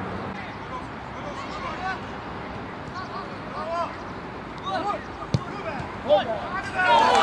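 Young men call out to each other across an open field.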